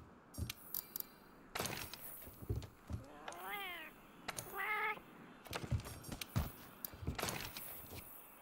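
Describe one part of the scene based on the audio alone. Menu selection sounds click and chime.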